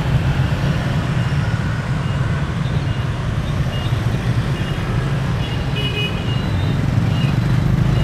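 Motorbike engines rumble as they pass close by.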